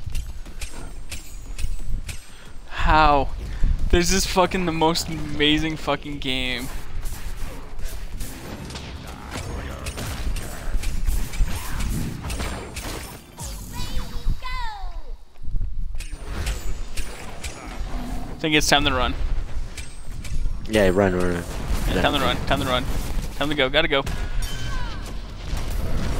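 Magic blasts, hits and crackling spell effects burst in quick succession.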